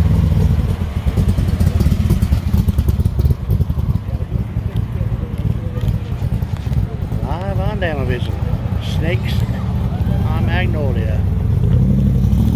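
A sports car engine rumbles loudly at idle nearby.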